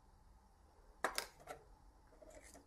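A trading card slides into a metal tin.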